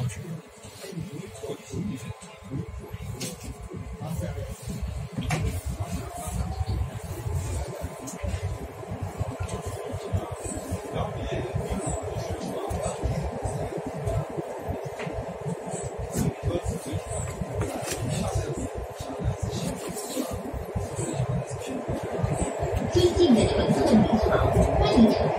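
A subway train rumbles along the tracks.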